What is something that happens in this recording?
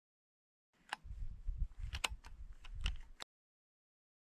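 A man adjusts a rifle scope with soft clicks and rustles.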